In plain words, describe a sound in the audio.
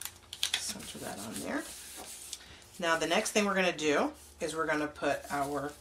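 Paper rustles and slides against paper as it is pressed and moved.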